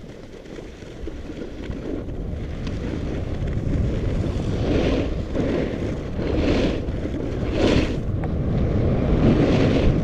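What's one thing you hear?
Skis scrape and hiss over packed snow, swelling in bursts with each turn.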